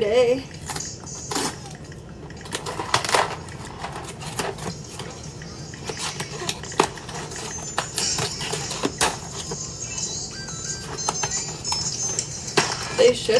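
Cardboard packaging rustles and taps in hands close by.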